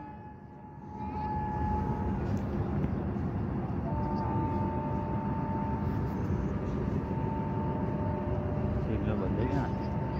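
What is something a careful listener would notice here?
A diesel multiple unit train rumbles as it approaches.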